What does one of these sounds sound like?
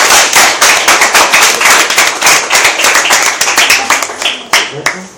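A young woman claps her hands rapidly nearby.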